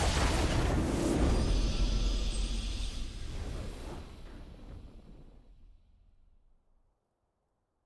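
A triumphant victory fanfare plays and fades out.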